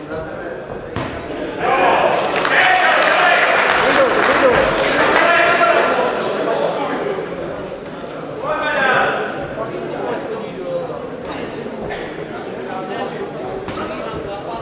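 Gloved punches land with sharp thuds.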